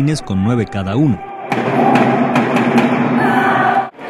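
A drum is beaten.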